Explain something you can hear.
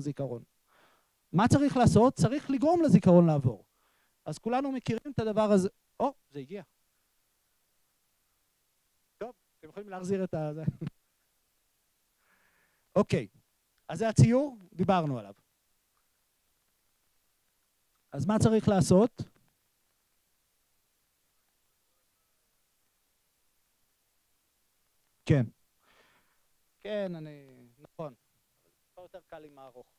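A man speaks into a microphone through a loudspeaker, pausing often.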